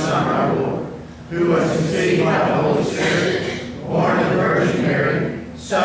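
A congregation of men and women recites together in unison, in a hall with a slight echo.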